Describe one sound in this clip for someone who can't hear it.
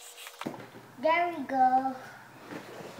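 A young boy speaks briefly nearby in a high voice.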